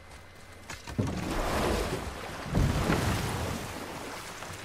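Water splashes loudly as a wooden boat is shoved into the shallows.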